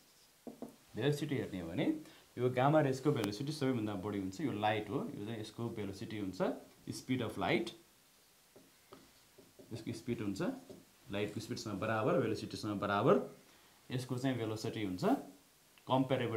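A man speaks calmly and clearly, close by, explaining.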